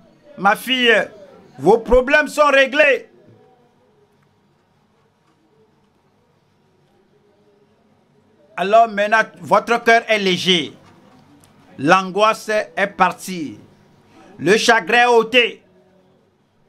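An elderly man speaks fervently through a microphone, in short bursts with pauses.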